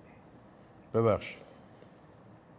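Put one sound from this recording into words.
A man speaks calmly, as if presenting.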